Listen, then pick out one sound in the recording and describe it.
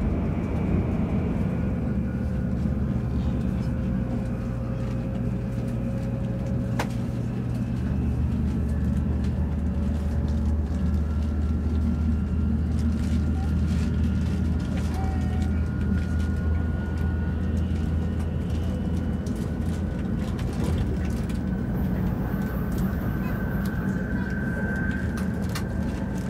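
A high-speed train hums and rumbles steadily from inside a carriage.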